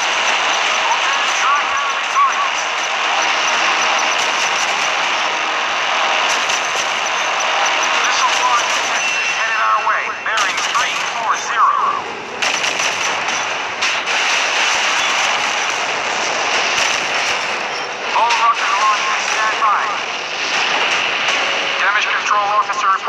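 Naval guns fire in rapid bursts.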